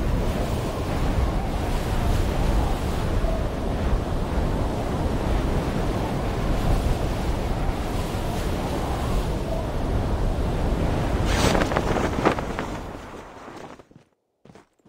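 Wind roars loudly during a fast freefall and dies away.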